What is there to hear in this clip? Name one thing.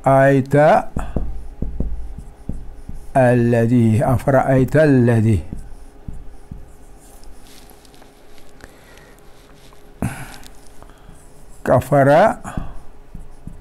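A man speaks in a slow, drawn-out voice close to a microphone.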